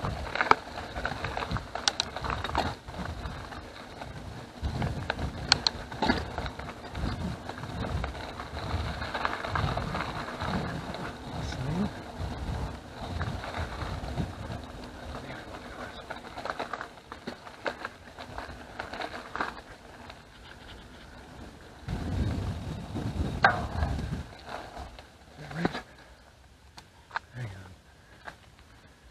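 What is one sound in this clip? Bicycle tyres crunch and rumble over a gravel path.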